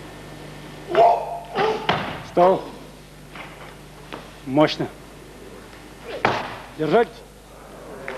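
A man grunts and shouts loudly with effort.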